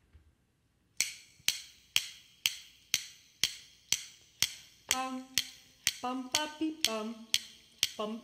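Wooden sticks click together in a steady beat.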